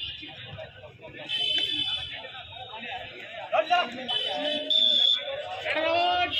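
A crowd of men shouts and cheers outdoors.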